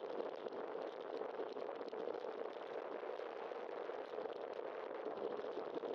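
Bicycle tyres rumble over rough pavement.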